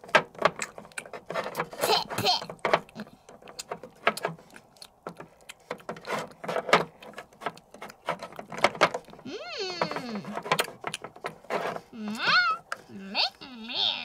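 A small toy rubs and taps against a plastic tub.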